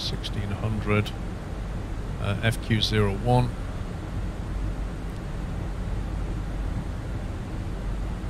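A steady low hum of aircraft engines drones.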